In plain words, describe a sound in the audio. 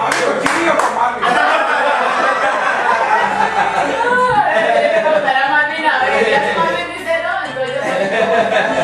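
Several adults talk over one another nearby in a room.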